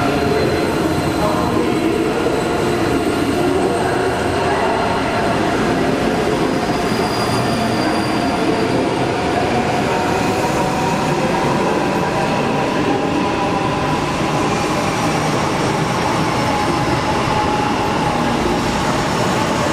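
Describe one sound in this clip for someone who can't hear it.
A high-speed train rumbles and whines as it rolls slowly through a large echoing station hall.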